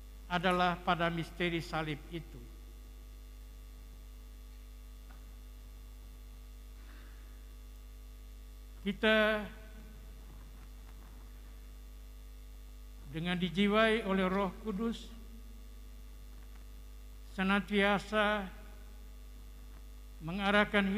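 An elderly man speaks slowly and solemnly through a microphone, with long pauses.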